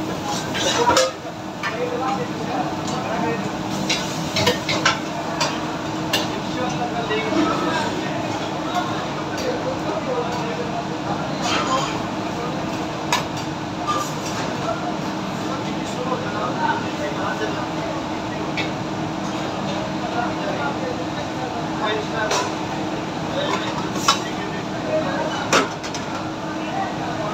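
An extractor fan hums steadily.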